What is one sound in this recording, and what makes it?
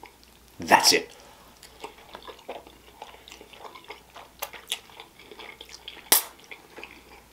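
A man slurps noodles loudly, close to a microphone.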